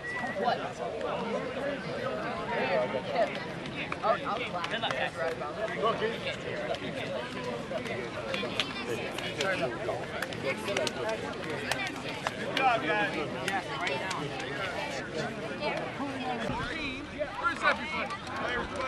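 Young men and boys talk and call out over one another outdoors.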